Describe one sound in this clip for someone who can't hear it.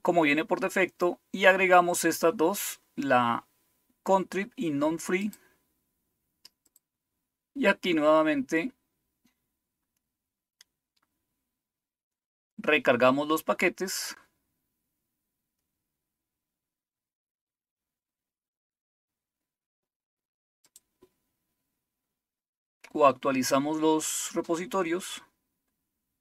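A man talks calmly and close to a microphone, in short bursts with pauses.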